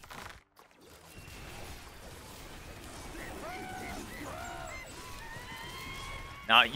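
Game laser beams zap and hum.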